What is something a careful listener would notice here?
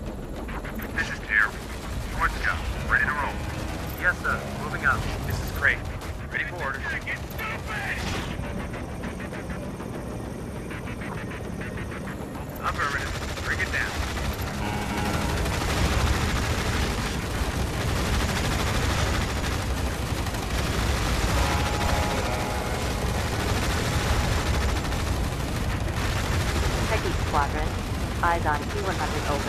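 Gunfire rattles and missiles streak off in bursts.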